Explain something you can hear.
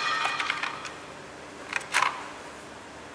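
Small metal parts clink and rattle.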